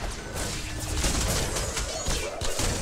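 Weapons blast and clash in a close fight.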